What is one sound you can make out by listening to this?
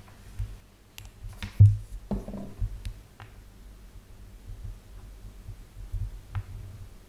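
A small plastic part clicks and taps as it is handled.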